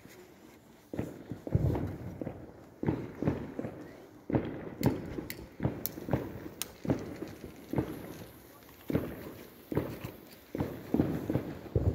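Firecrackers crackle and pop on the street.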